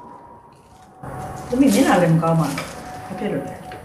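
An older woman speaks calmly nearby.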